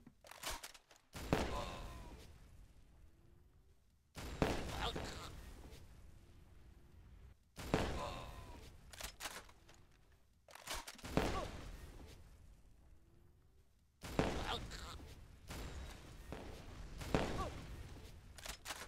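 Fireworks burst with loud bangs and crackle, again and again.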